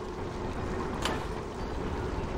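A soft game menu chime sounds as a menu opens.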